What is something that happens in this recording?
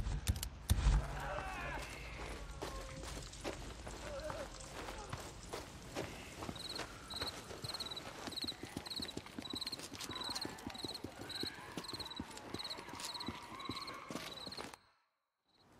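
Footsteps crunch through dry grass and brush.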